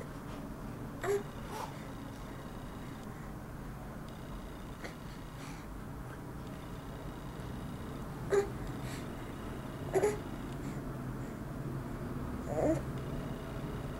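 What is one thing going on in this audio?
A baby squeals and babbles nearby in short bursts.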